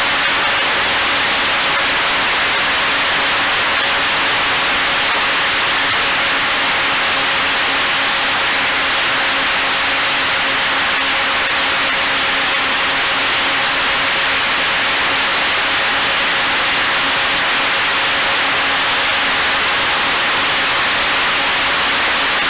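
A drone's propellers whine and hum steadily close by.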